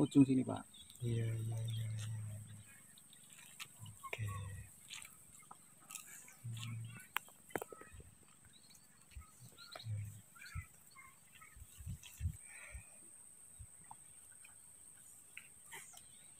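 Grass stalks rustle as a man pulls them from wet ground.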